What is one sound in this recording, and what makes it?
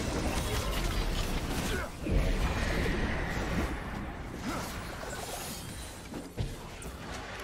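Magic spells whoosh and crackle in a busy fight.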